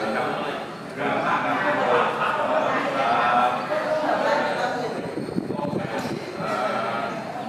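Several men chant together, close by.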